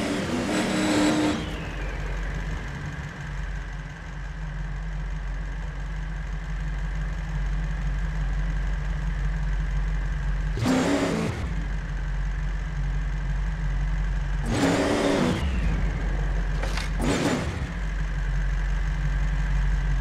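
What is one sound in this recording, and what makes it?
An engine hums steadily at low revs.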